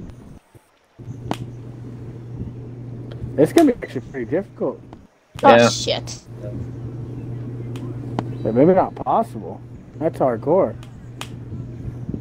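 A golf club taps a ball.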